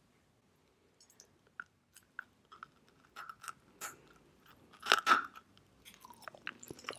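A young woman bites into a crumbly chalky lump with a sharp crunch.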